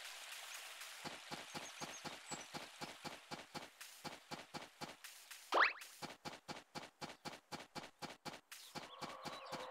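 Quick footsteps patter steadily on the ground.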